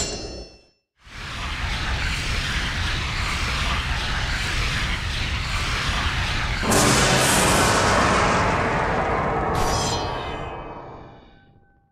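A heavy magical whoosh swells steadily, then ends in a bright chime.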